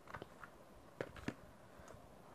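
A plastic calculator is set down on paper with a soft knock.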